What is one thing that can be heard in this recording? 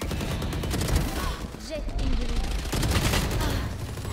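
Rapid gunshots crack from a video game.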